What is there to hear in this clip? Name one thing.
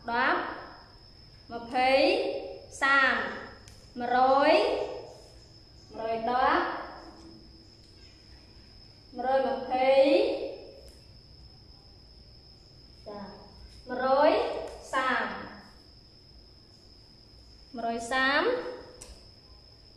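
A young woman speaks clearly and slowly, in short phrases, close by.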